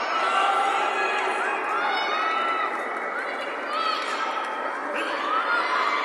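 Spectators whistle loudly in short rising and falling bursts.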